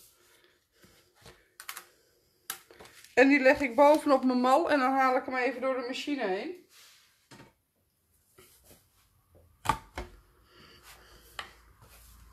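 A plastic stencil taps down onto a hard surface.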